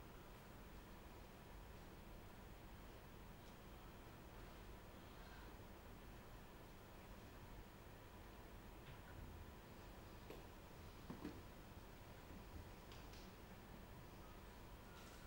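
A piano plays softly in a large, echoing hall.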